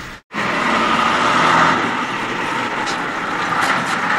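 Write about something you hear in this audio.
A truck engine rumbles as the truck drives past.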